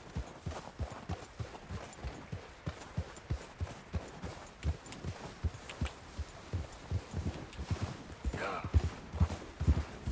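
Wind howls through a snowstorm.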